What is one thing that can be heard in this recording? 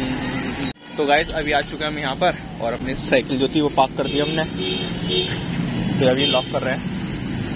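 A second young man talks cheerfully close to the microphone.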